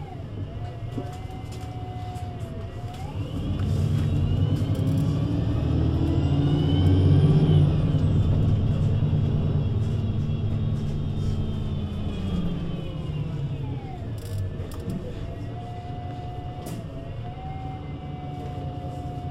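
A bus engine idles, then revs up with a rising whine and slowly settles back down.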